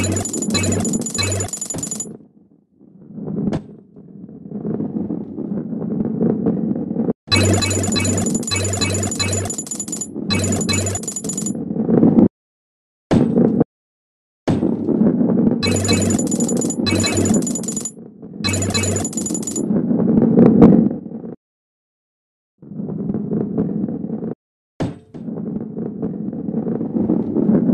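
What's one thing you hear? A ball rolls along with a low, steady rumble.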